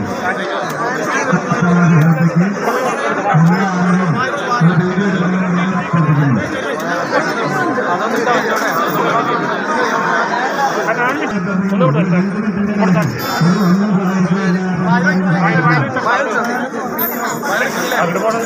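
A large crowd chatters loudly outdoors.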